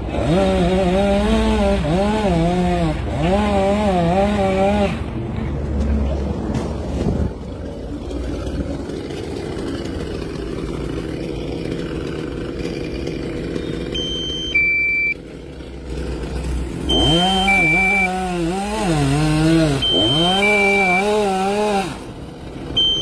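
A chainsaw revs loudly as it cuts through a palm trunk.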